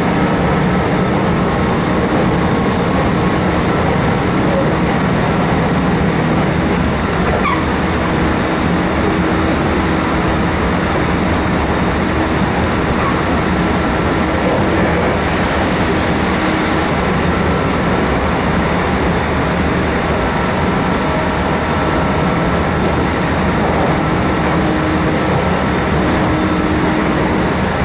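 A train's motor hums steadily.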